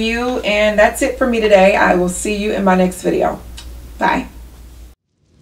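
A woman speaks warmly and with animation, close to a microphone.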